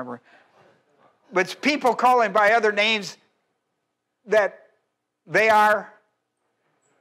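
An older man speaks with animation through a microphone.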